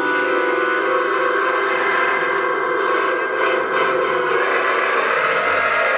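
A live band plays loud distorted guitars and drums.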